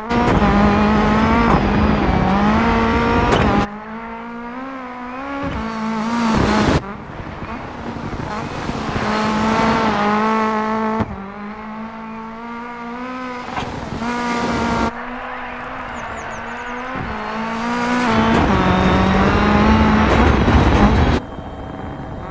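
A rally car engine roars loudly, revving up and down as gears shift.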